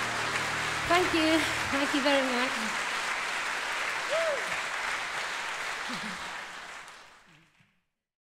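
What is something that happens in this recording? A woman sings into a microphone in a large echoing hall.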